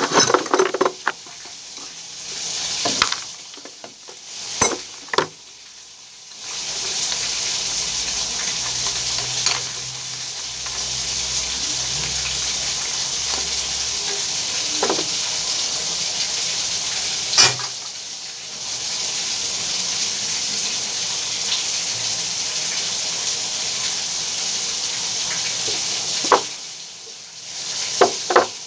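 Metal fittings clink and knock as a flexible hose is handled.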